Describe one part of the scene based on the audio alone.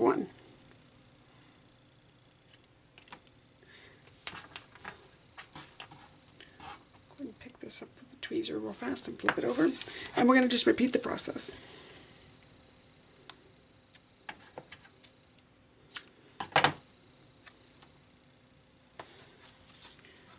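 Paper rustles and crinkles between fingers.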